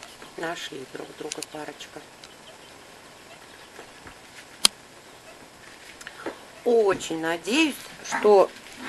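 Parrots chatter and squawk close by in short bursts.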